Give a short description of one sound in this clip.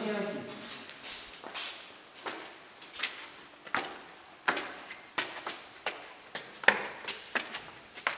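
Footsteps climb wooden stairs, echoing in a hollow space.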